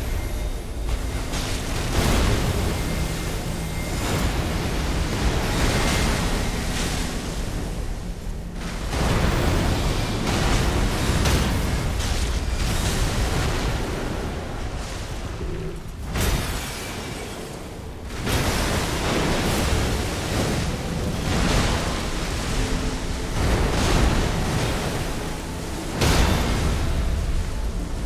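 Magical blasts crackle and boom loudly.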